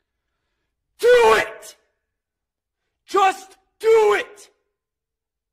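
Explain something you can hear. A man shouts forcefully in short bursts close to a microphone.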